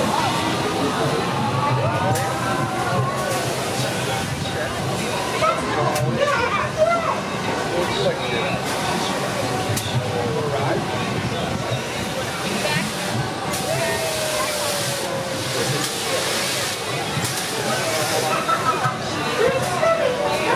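Children and adults chatter and shout nearby, outdoors.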